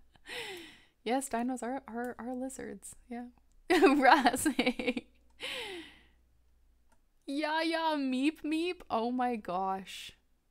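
A young woman sings short phrases close to a microphone.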